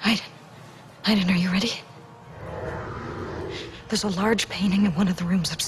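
A young woman speaks softly and hesitantly, close by.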